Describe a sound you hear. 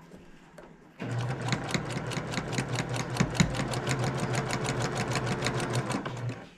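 A sewing machine stitches rapidly with a steady, rhythmic hum.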